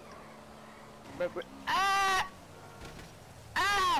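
A motorcycle crashes into a car with a thud.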